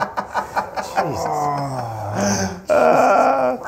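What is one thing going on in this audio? An elderly man laughs loudly up close.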